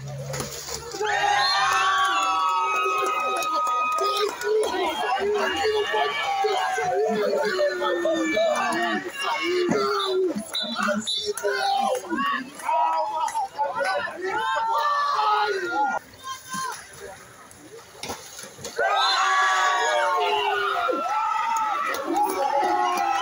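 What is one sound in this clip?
A crowd of men and women cheers and shouts loudly nearby.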